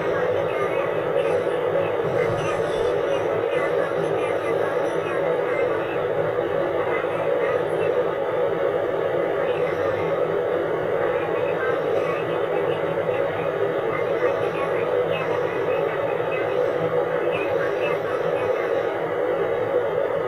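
A car drives steadily along a road with a low rumble.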